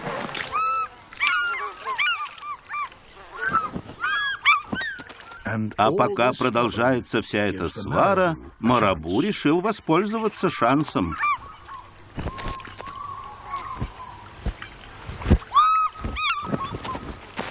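A young eagle shrieks and squeals repeatedly.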